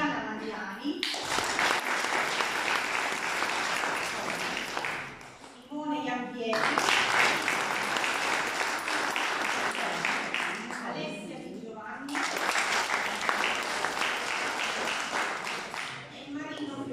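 A crowd applauds loudly in repeated bursts.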